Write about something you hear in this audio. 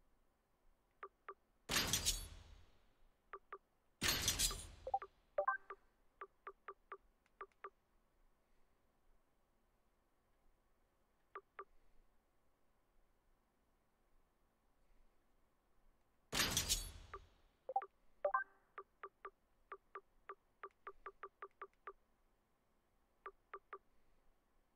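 Short soft menu clicks tick again and again as a selection moves through a list.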